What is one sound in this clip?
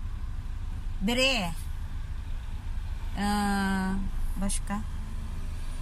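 A young woman sings short notes close by.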